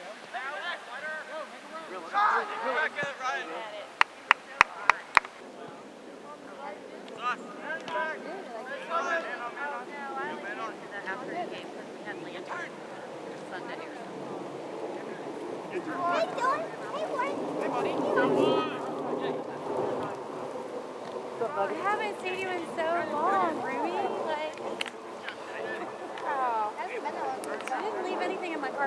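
Young players shout and call to each other outdoors.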